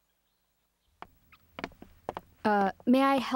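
Footsteps tap across a hard floor.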